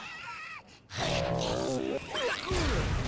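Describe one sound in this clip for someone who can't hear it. A creature bursts with a loud, wet explosion.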